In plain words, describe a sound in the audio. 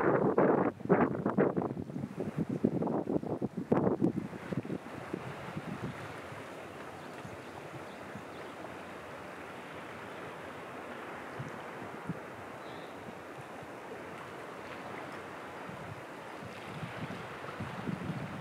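Small waves lap gently against rocks along the shore.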